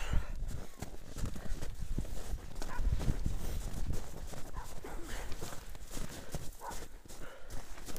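Bicycle tyres crunch and rumble over packed snow.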